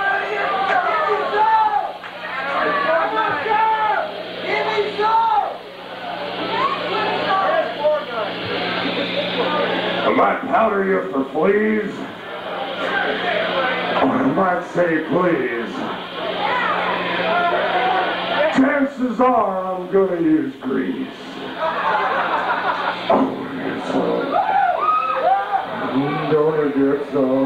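An electric guitar plays a loud, wailing lead through an amplifier.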